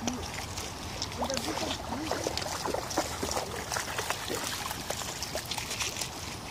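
Pebbles crunch and clatter under a dog's paws.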